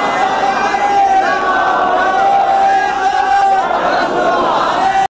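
A man sings a slow, drawn-out chant through a loudspeaker, holding long notes.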